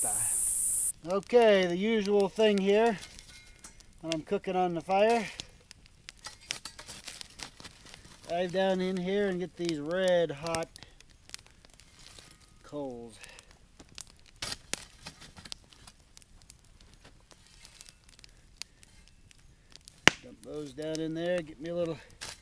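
A shovel scrapes through ashes and embers.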